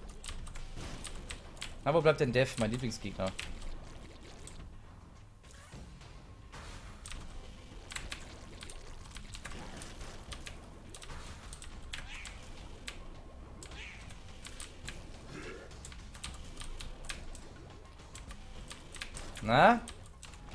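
Video game effects pop and splatter rapidly.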